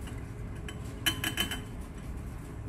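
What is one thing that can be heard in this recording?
Glassware clinks as a hand picks it up.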